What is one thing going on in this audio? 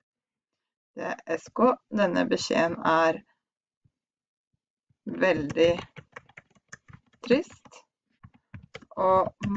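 A young woman speaks calmly into a headset microphone, in short bursts with pauses.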